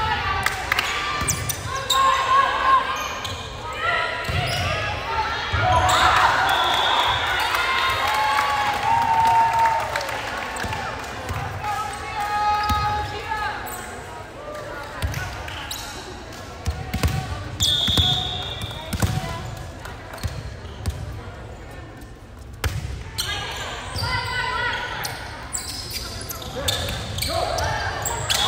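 A volleyball thuds as players hit it back and forth in a large echoing gym.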